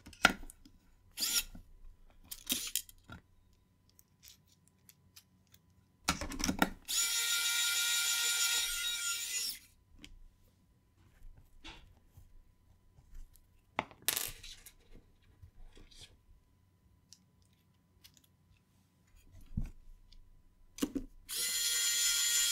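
A metal case clicks and knocks as it is handled.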